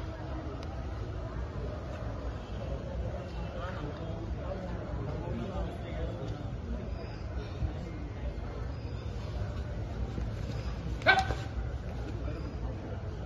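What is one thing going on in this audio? Young men's voices call and murmur throughout, outdoors.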